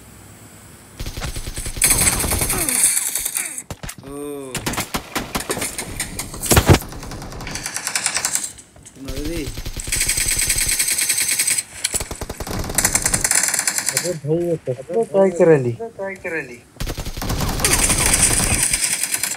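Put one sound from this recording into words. Automatic rifle fire crackles in a video game.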